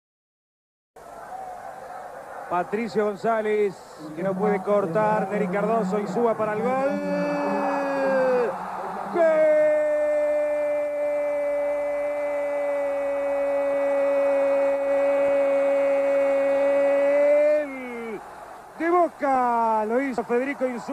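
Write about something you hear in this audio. A large crowd cheers and roars in a stadium outdoors.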